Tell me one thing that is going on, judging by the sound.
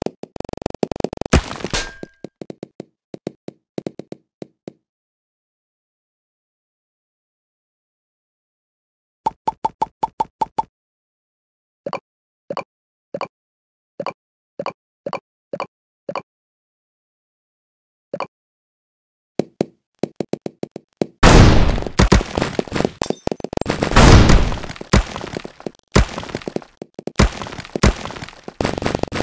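Game balls pop and clatter as blocks break.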